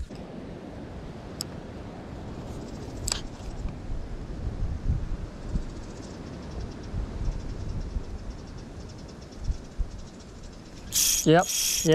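Wind rumbles against a nearby microphone outdoors.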